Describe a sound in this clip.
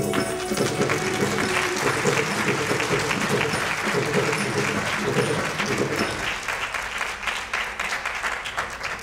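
Drums are struck in a quick rhythm.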